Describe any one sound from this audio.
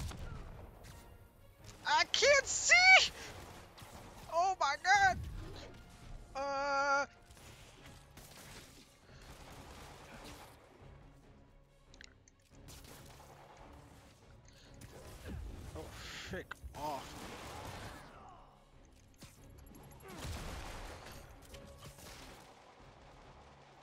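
Punches and blows land with thuds during a fight.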